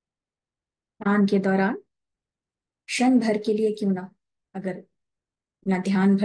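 A woman speaks calmly into a microphone over an online call.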